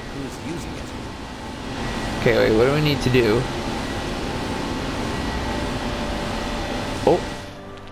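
Energy beams hum and crackle steadily.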